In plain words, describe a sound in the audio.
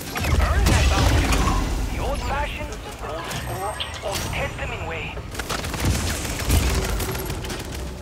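A deep explosive rumble booms and swirls.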